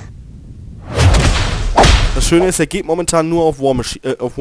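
Blows land with sharp, crunching impacts.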